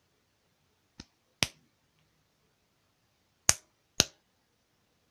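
Sharp knocks sound as a doll is handled up close.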